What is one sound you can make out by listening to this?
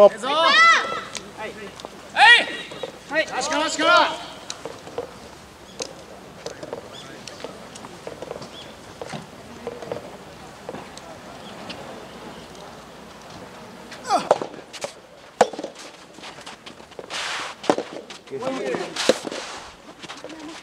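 Young players shout loudly outdoors.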